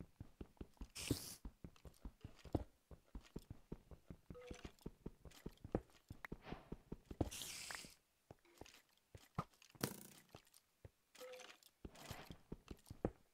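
Blocks of stone break loose with a crumbling crunch.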